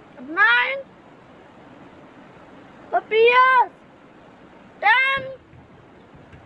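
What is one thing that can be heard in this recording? A young boy speaks loudly and clearly, saying single words with pauses between them.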